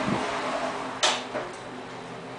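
An elevator lands with a dull thump.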